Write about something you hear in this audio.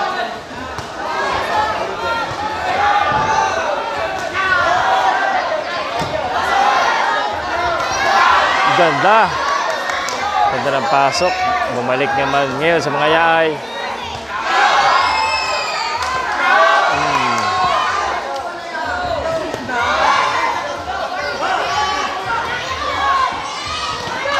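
A crowd of spectators shouts and cheers around the ring.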